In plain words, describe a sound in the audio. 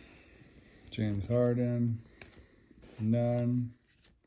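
Trading cards slide and rustle against each other in hands.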